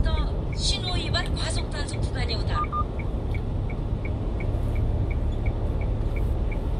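A car drives along a road with a steady low rumble of engine and tyres.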